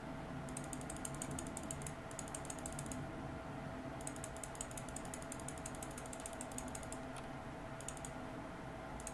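Rapid clicking combat sounds from a game play in bursts.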